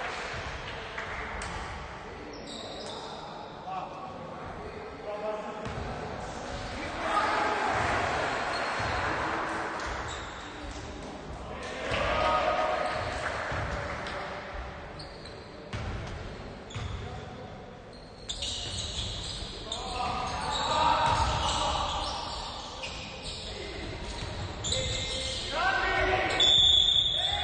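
Basketball players' sneakers squeak on a wooden court, echoing in a large hall.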